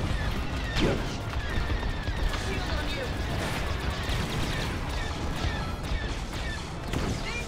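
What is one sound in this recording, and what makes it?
Laser guns fire in rapid bursts.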